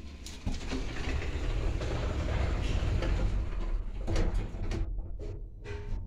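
Elevator doors slide shut with a rumble.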